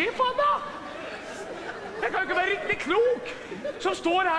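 A man answers in a theatrical voice.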